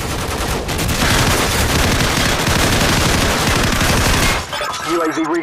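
A rifle fires rapid, loud bursts.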